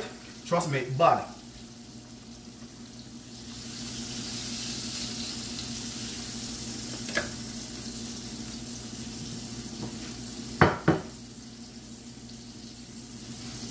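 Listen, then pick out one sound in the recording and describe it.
Oil sizzles in a frying pan.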